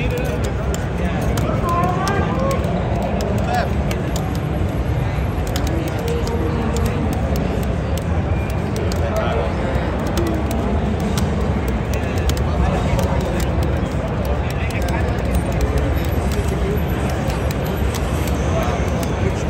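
A crowd of people chatters all around in a large, busy hall.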